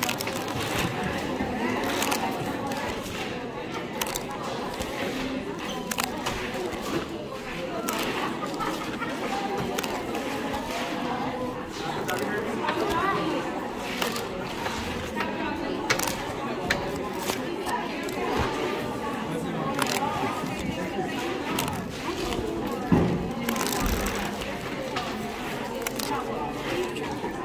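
Stiff paper cards rustle and flick as they are handled one by one.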